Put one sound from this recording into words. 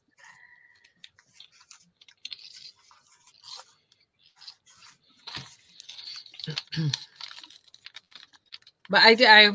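Paper rustles and crinkles softly as it is handled and folded.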